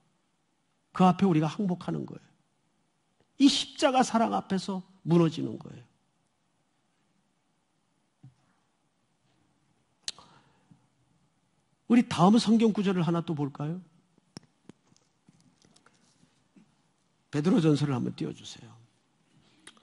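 A middle-aged man speaks calmly into a microphone in phrases with long pauses.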